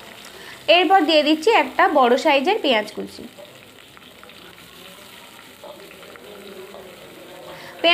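Chopped onion sizzles in hot oil.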